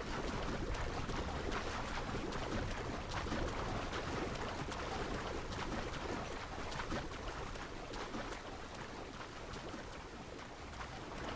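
Water splashes steadily as a swimmer strokes through the sea.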